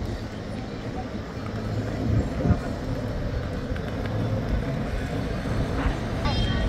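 Small tyres roll on a paved road with a low hum.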